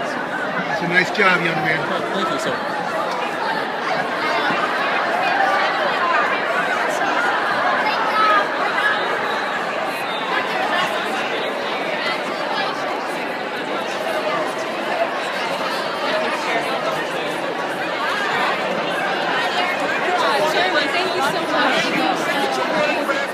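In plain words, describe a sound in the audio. Women laugh and exclaim excitedly close by.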